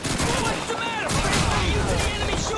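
A grenade explodes nearby with a loud boom.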